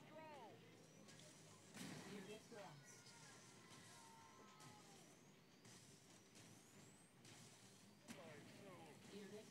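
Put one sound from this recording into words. Weapons fire and small explosions burst in short rapid bursts.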